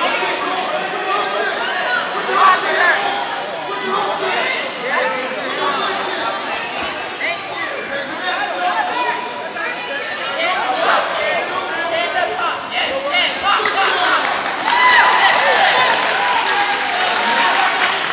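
A crowd of people chatters and cheers in a large echoing hall.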